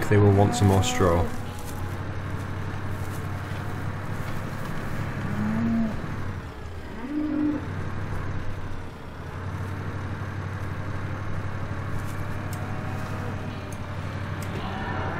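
A diesel engine of a loader rumbles steadily.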